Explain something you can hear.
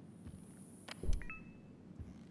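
A cabinet door bangs shut.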